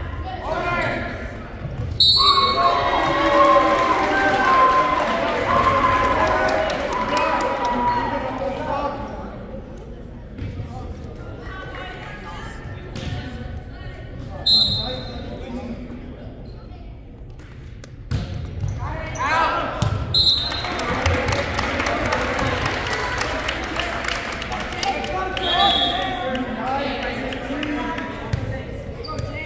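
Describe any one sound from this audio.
A volleyball smacks off a player's hands.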